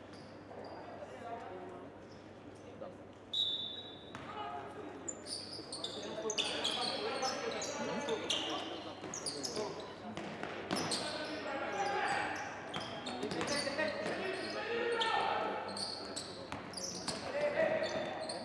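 Players shout to each other across an echoing court.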